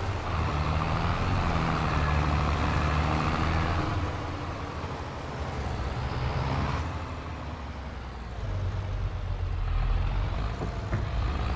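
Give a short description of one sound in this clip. A tractor engine rumbles steadily, rising and falling in pitch.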